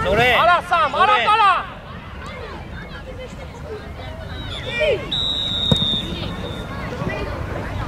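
Boys shout loudly across an open field.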